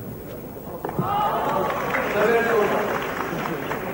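A crowd cheers and claps in a large hall.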